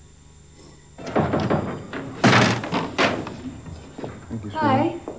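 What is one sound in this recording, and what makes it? Dishes clatter on a counter.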